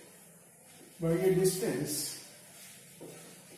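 An elderly man speaks calmly, lecturing.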